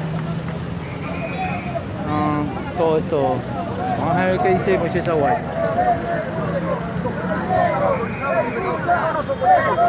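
A crowd of men talks and shouts loudly outdoors.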